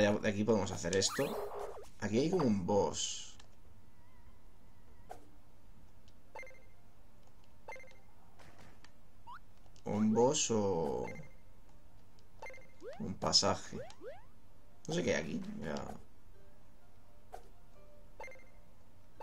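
Short electronic game sound effects chime and blip.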